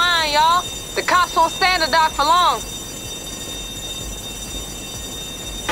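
A cutting torch hisses and crackles steadily.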